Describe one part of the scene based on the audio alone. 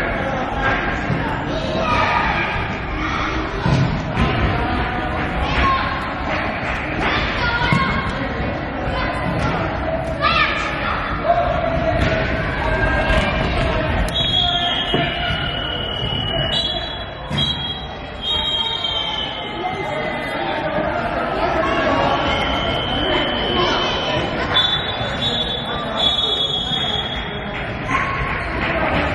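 A futsal ball is kicked with a thump.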